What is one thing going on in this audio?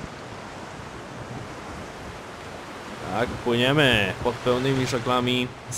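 Waves wash and churn on open sea.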